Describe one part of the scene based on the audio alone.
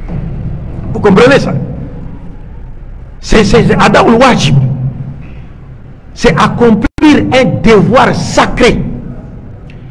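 A man speaks forcefully and with animation into a close microphone.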